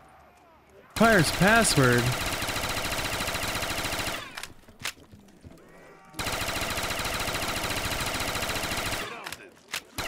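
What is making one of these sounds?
A rapid-fire gun shoots in fast bursts.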